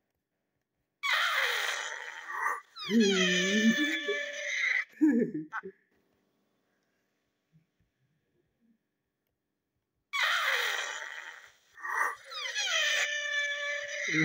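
Cartoon sound effects whistle and slide through a small loudspeaker, with pauses of silence.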